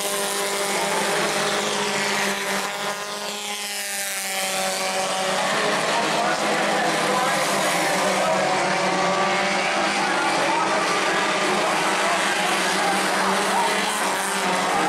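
Race car engines roar loudly at high revs.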